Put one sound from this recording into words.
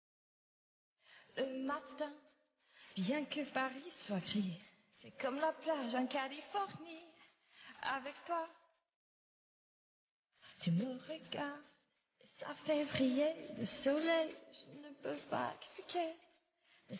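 A young woman speaks cheerfully and close to a microphone.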